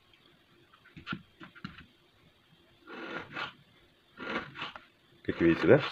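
A knife cuts through food onto a plastic board.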